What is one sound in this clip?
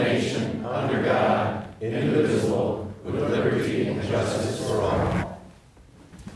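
A group of people recite together in unison in a large room.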